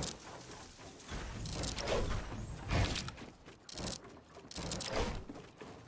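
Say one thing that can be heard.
Wooden wall pieces clatter and thud as they are placed.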